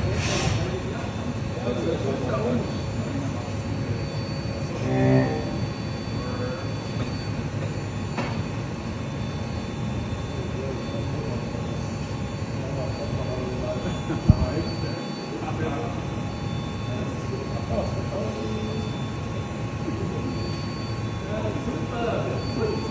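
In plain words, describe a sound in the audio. A machine tool cuts into spinning metal with a steady grinding whir.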